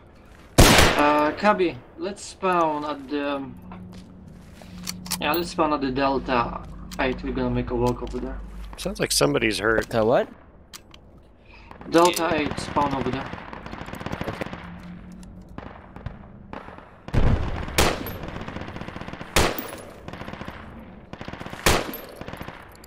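A rifle fires sharp, loud shots that echo briefly.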